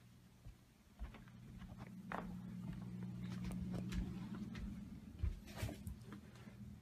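Footsteps thud softly on a carpeted floor.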